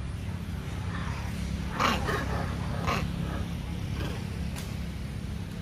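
A monkey bites and tears into a fruit with crunching sounds.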